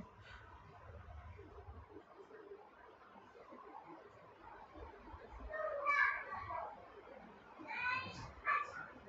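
Fingers rustle softly through hair.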